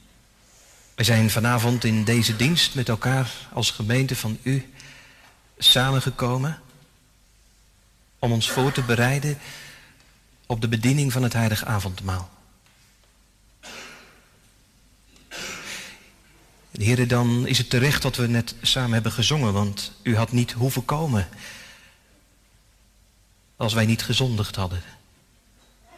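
A man reads aloud calmly into a microphone, heard through a loudspeaker in an echoing hall.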